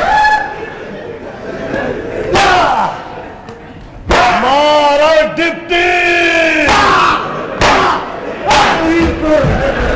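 A man shouts loudly on a stage.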